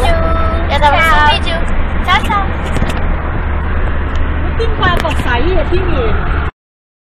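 Young girls talk and laugh close by.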